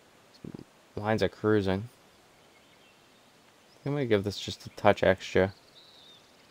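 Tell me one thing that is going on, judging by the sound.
A young man speaks casually into a close microphone, in short bursts.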